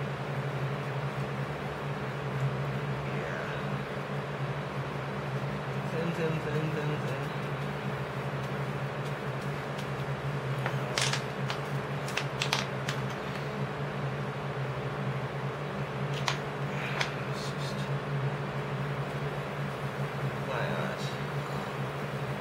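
A brush scrapes and dabs paint on a plate.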